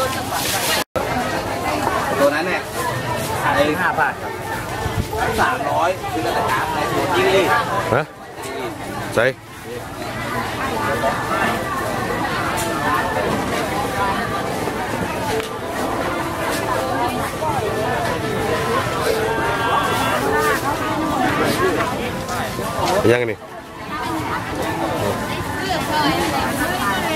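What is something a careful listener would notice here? A crowd of men and women chatter outdoors.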